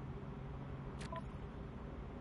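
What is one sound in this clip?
A short electronic menu chime clicks.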